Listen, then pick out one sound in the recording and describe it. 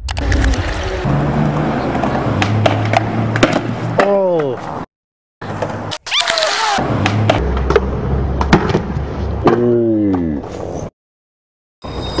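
A skateboard clatters and slams onto pavement.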